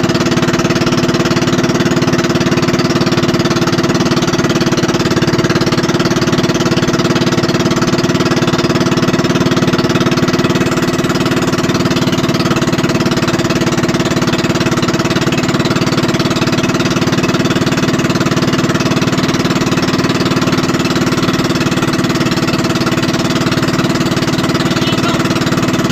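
A boat's outboard engine drones loudly and steadily up close.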